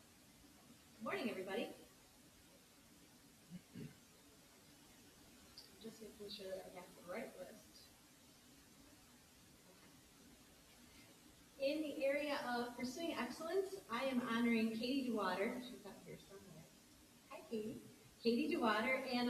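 A middle-aged woman speaks calmly into a microphone, heard over a loudspeaker in a large hall.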